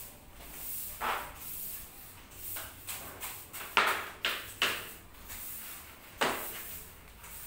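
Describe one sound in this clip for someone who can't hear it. A broom sweeps across a hard floor with short brushing strokes.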